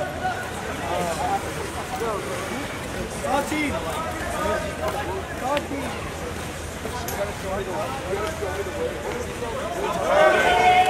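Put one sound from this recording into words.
A crowd of young people shouts and calls out from a distance, outdoors.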